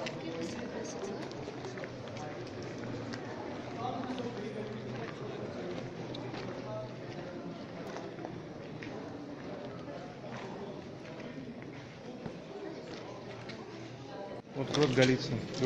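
People chatter in the background, echoing in the cave.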